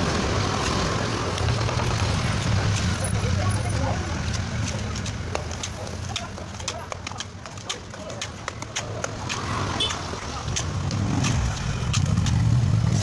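A trowel scrapes and taps on wet cement.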